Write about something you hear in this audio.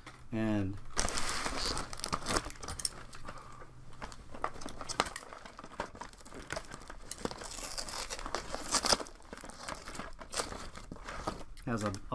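A man rummages and scrapes on a wooden board on the floor.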